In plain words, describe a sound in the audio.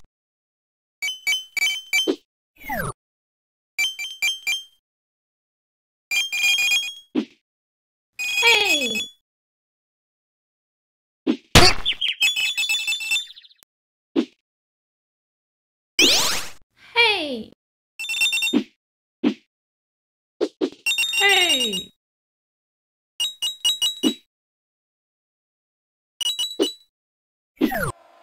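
Bright electronic coin chimes ring out in quick bursts.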